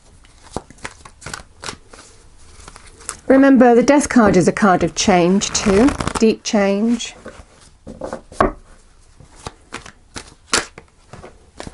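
Playing cards riffle and flutter as they are shuffled by hand.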